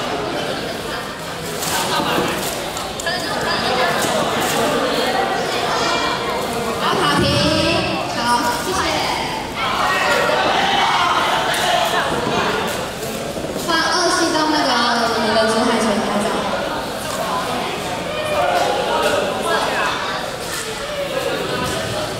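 Young women talk and call out loudly in a large echoing hall.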